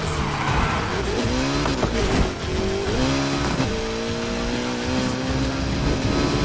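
A racing car engine roars and revs higher through quick gear shifts.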